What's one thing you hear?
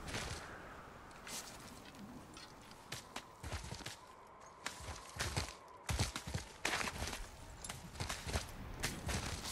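Hands and boots scrape and knock against rock while climbing.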